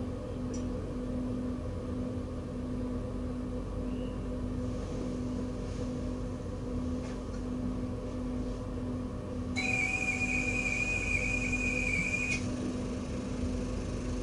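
A train's motors hum steadily while it idles.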